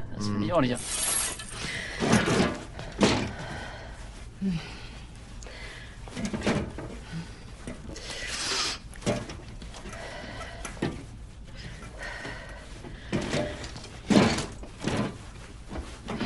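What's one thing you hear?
A window frame rattles and knocks as it is opened.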